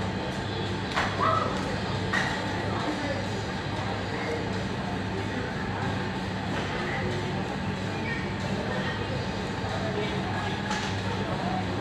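Metal weight plates clink on a barbell as it is lifted.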